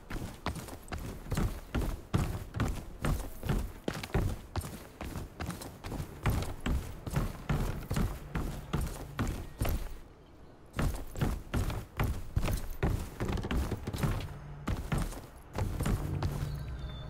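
Quick footsteps thud on wooden boards.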